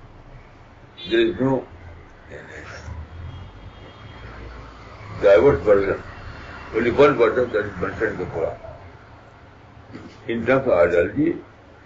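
An elderly man speaks calmly and slowly, close by, with pauses.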